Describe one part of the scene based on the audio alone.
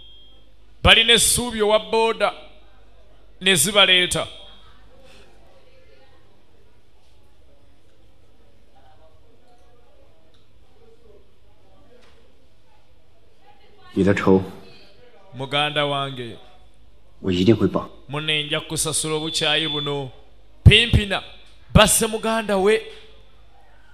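A man speaks in a tense, low voice close by.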